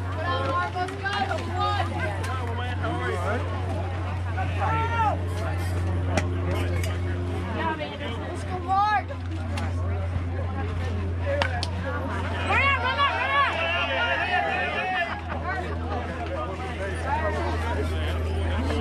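Spectators call out and cheer outdoors.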